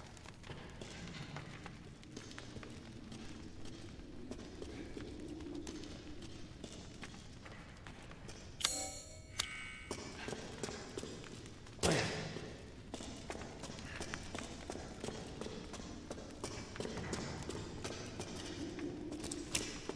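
Footsteps walk slowly on a stone floor.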